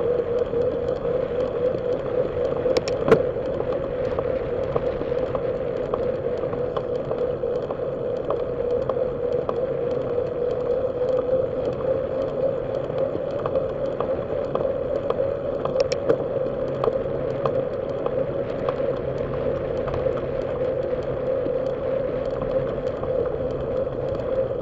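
Tyres hum steadily on smooth pavement.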